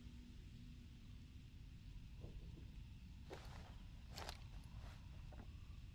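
A revolver's cylinder clicks as it turns.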